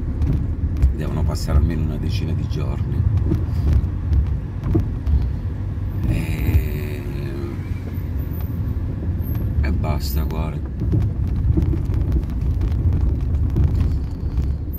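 A car engine rumbles low and steady from inside the car.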